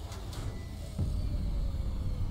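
A laser weapon fires with a loud buzzing blast.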